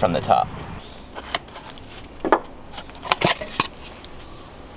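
Wooden blocks knock and scrape against concrete.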